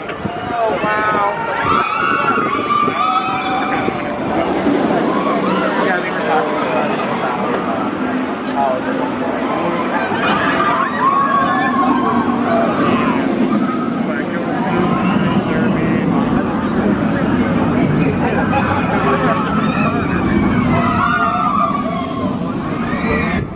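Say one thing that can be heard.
A roller coaster train roars along its track.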